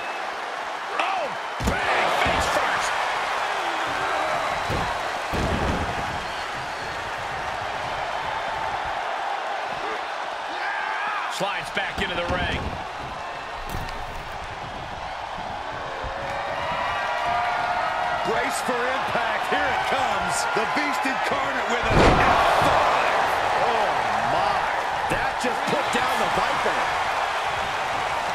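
A crowd cheers loudly throughout in a large arena.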